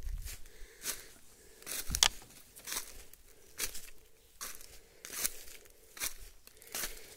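Footsteps crunch through dry leaves at a steady walking pace.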